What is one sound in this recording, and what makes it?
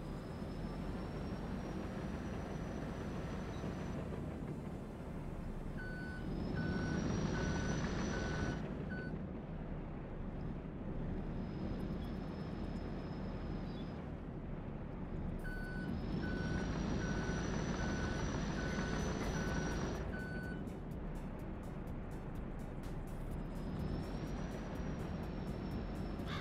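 A diesel engine rumbles steadily and revs up at times.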